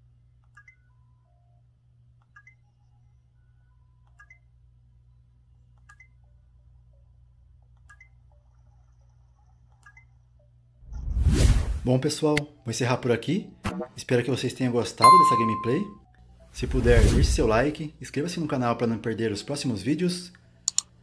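Small buttons click softly on a handheld game console.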